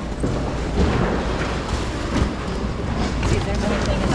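A cardboard sheet scrapes and flaps.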